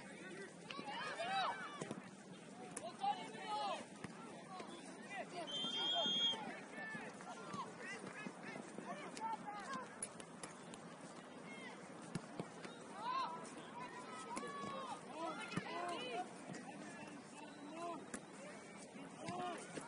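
Young players shout and call to each other outdoors across an open field.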